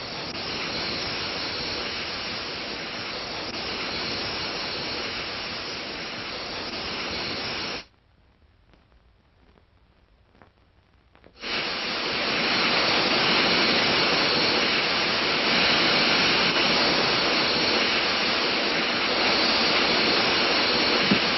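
Steam hisses loudly and steadily as it billows out.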